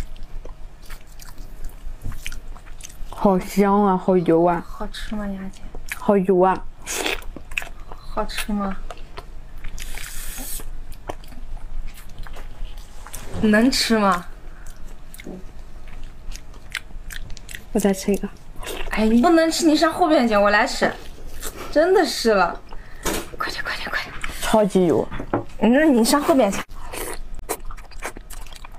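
Food crunches and squelches as a young woman chews close to a microphone.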